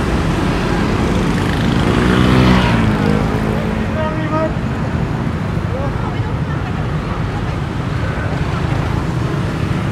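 Motorbike engines buzz past up close.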